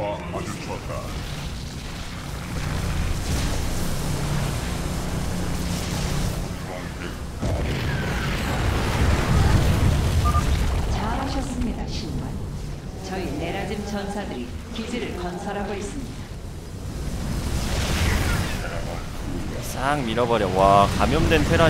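Laser beams hum and crackle in a loud, steady video game battle.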